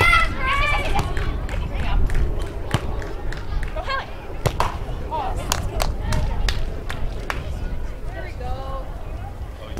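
Young women call out to each other.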